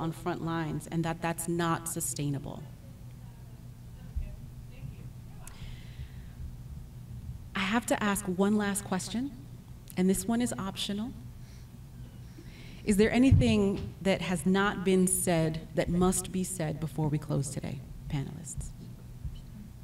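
A young woman speaks with animation into a microphone, pausing now and then.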